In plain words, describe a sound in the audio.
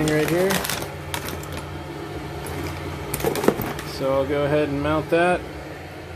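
A metal gauge panel rattles and clinks as it is handled.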